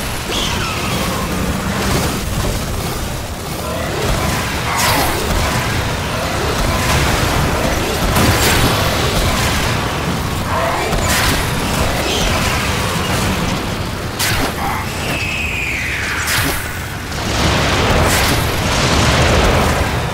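Energy weapons whoosh and zap.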